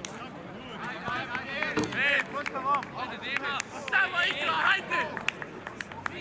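A crowd of men shout and call out across an outdoor sports field.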